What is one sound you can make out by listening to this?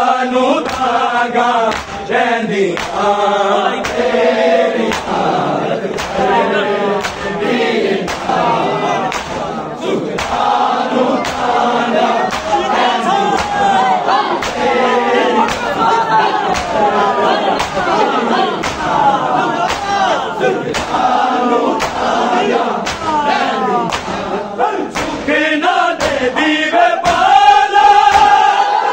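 Men beat their chests in a steady rhythm.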